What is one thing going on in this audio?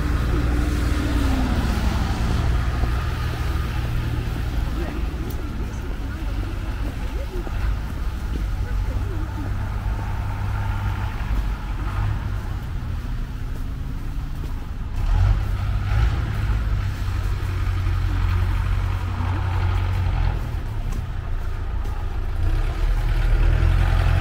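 Footsteps crunch on packed snow close by.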